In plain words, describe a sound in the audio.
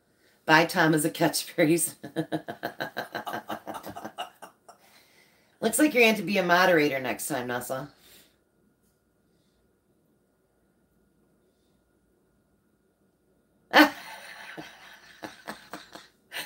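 A middle-aged woman laughs close by.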